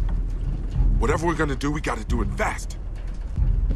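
A man speaks urgently.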